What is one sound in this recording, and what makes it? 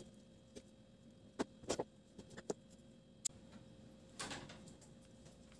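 Dry twigs snap and knock against each other close by.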